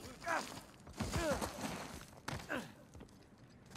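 A man grunts and pants with effort.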